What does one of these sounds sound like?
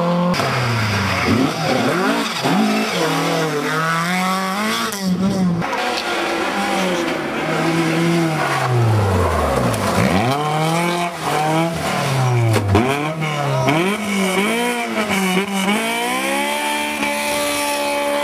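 A rally car engine revs hard, its pitch rising and falling sharply.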